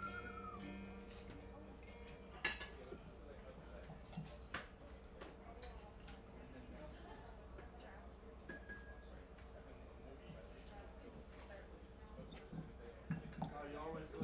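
A man plucks quiet notes on an electric guitar.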